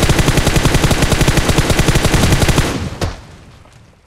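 A car explodes with a heavy boom.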